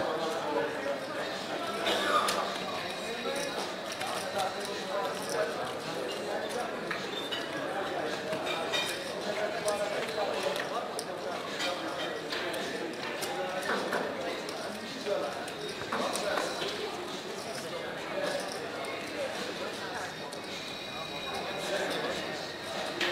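Casino chips clink and clatter on a table.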